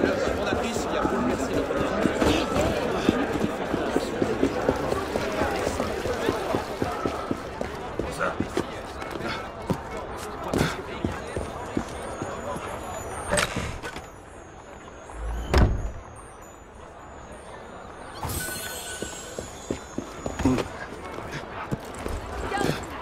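Footsteps run quickly over stone.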